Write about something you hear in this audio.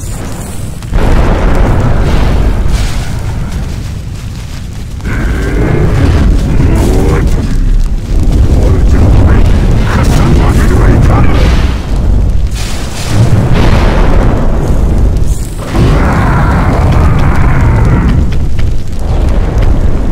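Explosions boom and fire roars.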